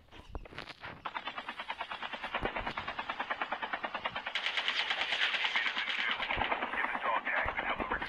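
A helicopter's rotor thumps rapidly and grows louder as it lifts off.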